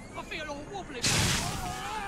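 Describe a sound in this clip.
An electric bomb bursts with a loud crackling blast.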